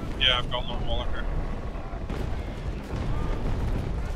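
Cannons fire in a booming volley.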